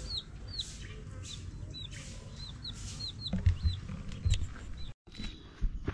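Chicks peep in quick, high chirps.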